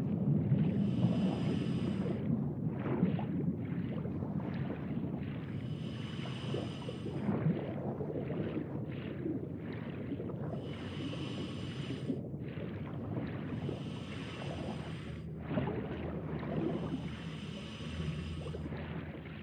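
A diver breathes out through a regulator in regular bursts of bubbles underwater.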